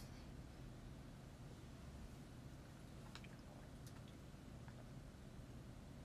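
A young woman sips a drink from a mug.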